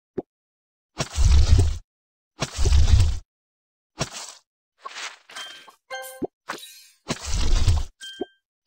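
Game pickaxe strikes thud heavily against rock.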